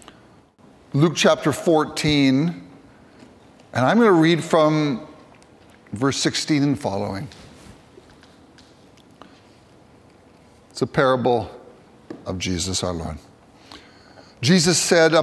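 A middle-aged man reads aloud calmly through a microphone in a room with a slight echo.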